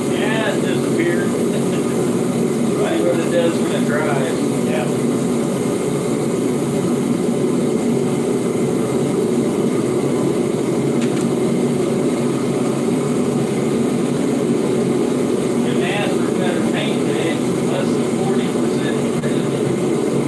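An older man talks nearby.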